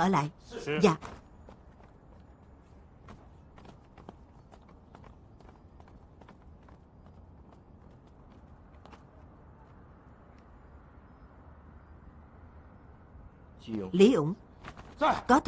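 A young man speaks briefly and firmly, close by.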